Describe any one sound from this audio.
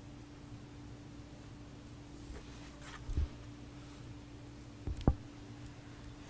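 A woman breathes slowly and softly in her sleep, close by.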